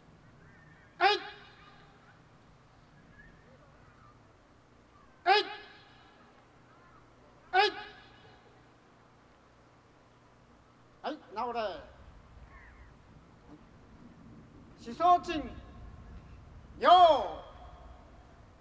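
A group of men shout loud, sharp cries together outdoors.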